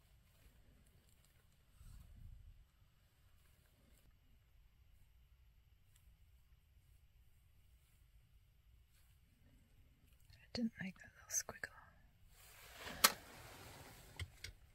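A paintbrush softly scrapes across a canvas.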